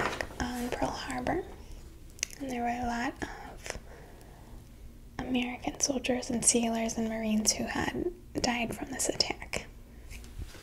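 A young woman speaks calmly and close into a microphone.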